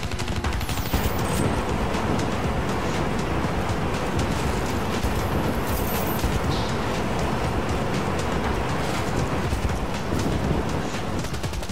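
A flamethrower roars in loud bursts.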